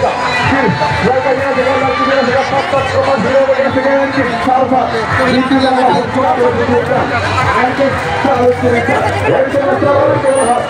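A crowd of people talks and shouts close by, outdoors.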